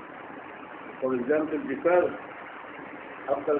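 An elderly man speaks briefly and close by, in a low voice.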